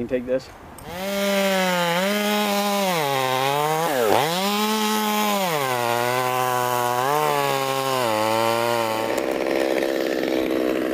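A chainsaw roars loudly close by, its pitch rising and falling as it cuts into wood.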